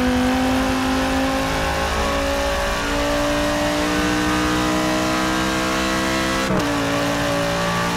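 A racing car engine roars loudly, climbing in pitch and dropping briefly as it shifts gears.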